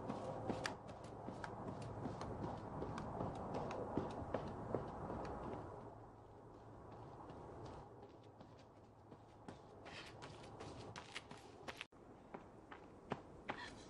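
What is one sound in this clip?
Footsteps crunch on dry leaves and earth as a person runs.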